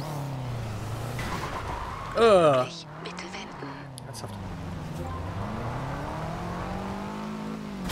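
Tyres squeal on wet pavement.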